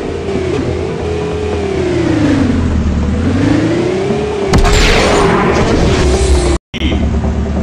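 A racing car engine whines, its pitch rising and falling.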